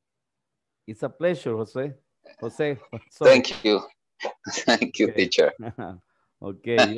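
A second man laughs over an online call.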